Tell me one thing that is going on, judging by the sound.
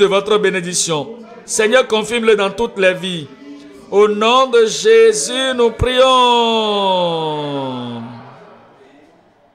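A man sings with passion, his voice echoing through a large hall.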